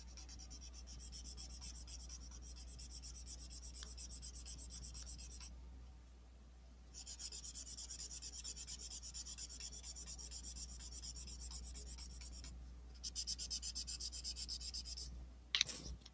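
A felt marker squeaks and scratches across paper in short strokes.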